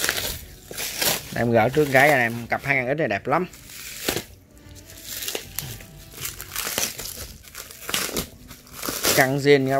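Plastic sheeting crinkles and rustles as it is handled.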